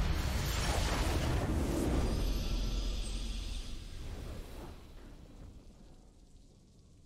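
A game's triumphant victory sound booms loudly and then slowly fades away.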